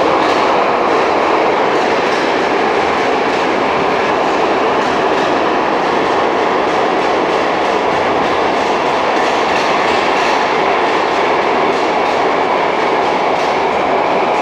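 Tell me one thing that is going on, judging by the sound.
A subway train rumbles and roars loudly along the tracks.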